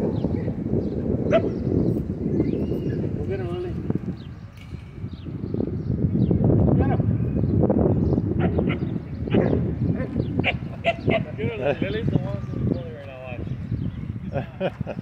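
Dogs yip and growl as they play close by.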